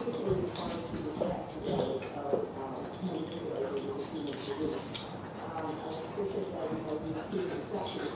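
A dog growls playfully.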